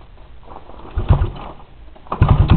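A man kicks the starter of a small engine with a couple of thumps.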